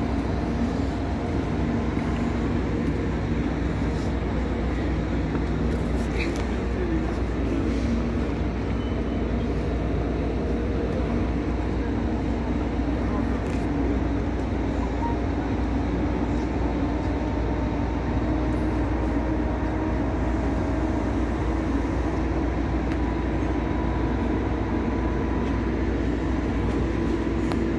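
A train hums steadily as it idles nearby.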